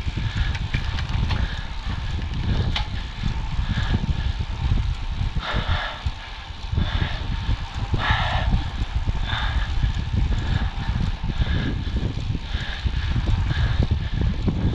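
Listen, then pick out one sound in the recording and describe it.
Wind rushes loudly and steadily past outdoors.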